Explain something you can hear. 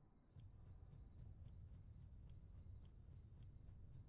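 Buttons on a console click softly.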